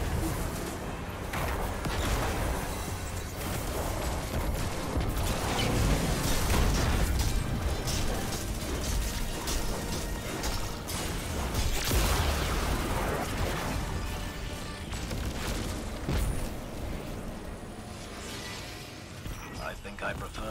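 Guns fire rapidly amid loud blasts.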